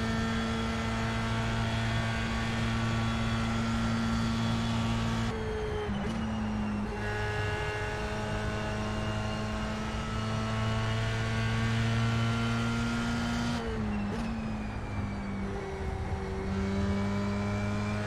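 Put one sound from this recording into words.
A racing car engine roars steadily, dropping in pitch at each gear change and then climbing again.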